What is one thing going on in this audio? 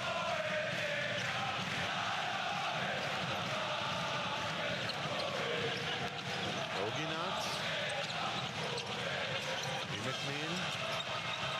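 A large crowd cheers and chants steadily in an echoing arena.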